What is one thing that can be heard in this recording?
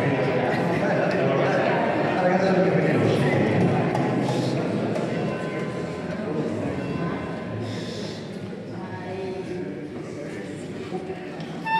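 A flute plays a soft melody.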